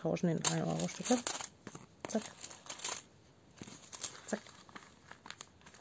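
Coins clink down onto paper.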